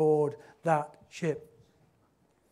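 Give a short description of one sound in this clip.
A man speaks calmly into a microphone in a room with a slight echo.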